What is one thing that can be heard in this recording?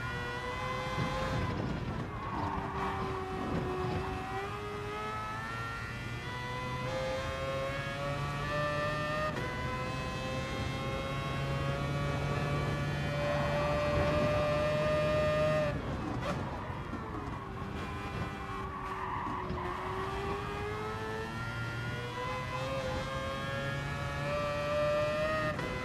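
A racing car engine roars, revving up through the gears and dropping as it brakes for corners.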